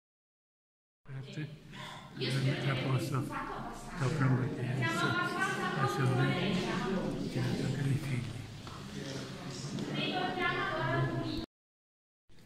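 A man talks calmly nearby in an echoing hall.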